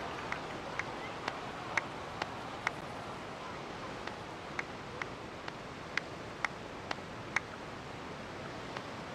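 Hands clap in a slow, steady rhythm.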